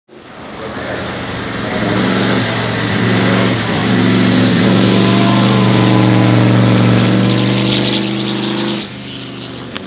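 A vintage racing car engine roars loudly as the car approaches and passes close by.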